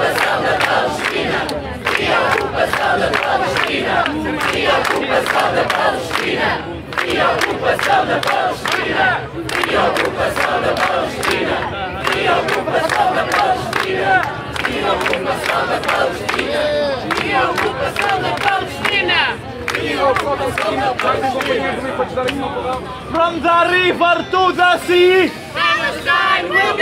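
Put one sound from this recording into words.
Many people clap their hands in rhythm.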